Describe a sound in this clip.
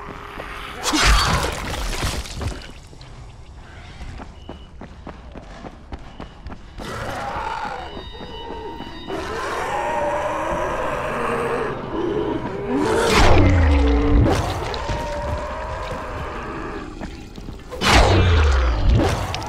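A melee weapon strikes into flesh with a heavy, wet thud.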